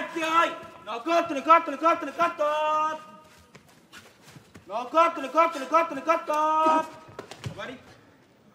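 A man calls out loudly in a high, drawn-out chanting voice.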